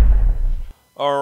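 A man starts speaking into a microphone.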